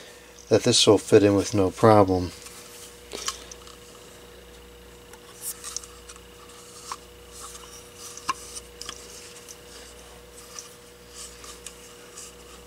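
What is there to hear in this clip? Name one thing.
Plastic and glass lamp parts tap and rub softly as they are handled.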